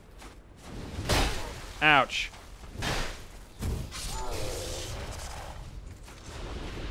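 A heavy blade swings through the air with a whoosh.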